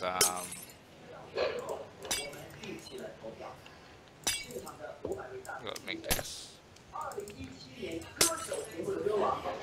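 Short clicks sound as items are moved around in a game.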